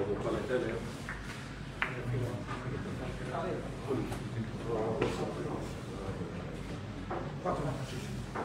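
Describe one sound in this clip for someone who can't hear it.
Men murmur quietly nearby.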